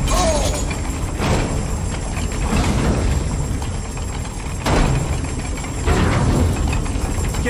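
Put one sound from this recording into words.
Huge metal gears grind and rumble steadily.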